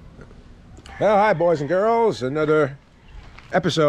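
An older man talks animatedly close to the microphone.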